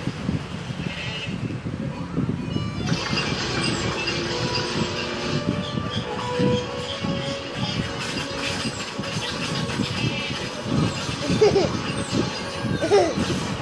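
A toddler babbles and giggles close by.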